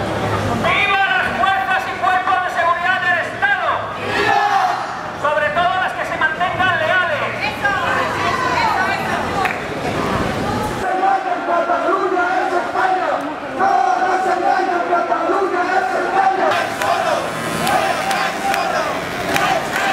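A large crowd of men and women chants in unison outdoors.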